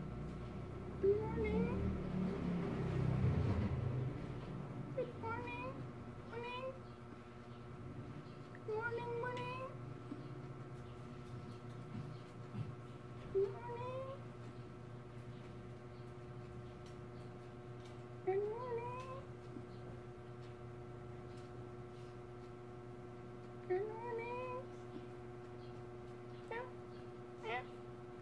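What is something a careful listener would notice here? A cat meows repeatedly close by with short rising cries.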